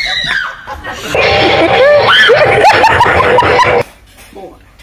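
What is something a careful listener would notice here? A woman screams loudly.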